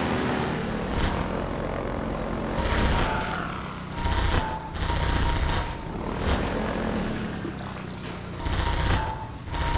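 A gun fires bursts of shots.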